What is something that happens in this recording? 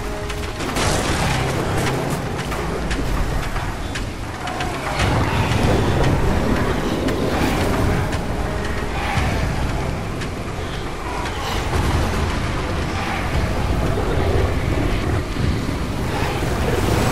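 Footsteps run quickly over soft, wet ground.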